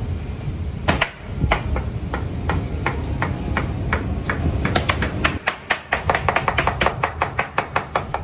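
A knife chops meat on a cutting board in quick taps.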